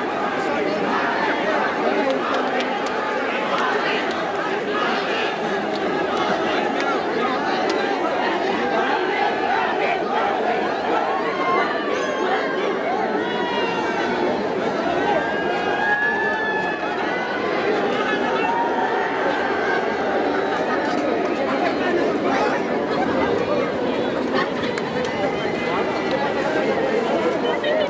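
Many young people chatter and call out loudly close by.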